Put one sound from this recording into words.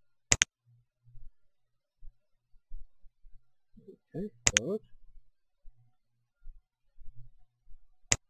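Short sharp menu clicks sound a few times.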